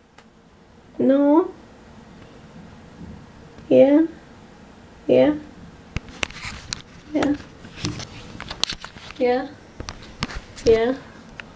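A young girl speaks in short bursts close by.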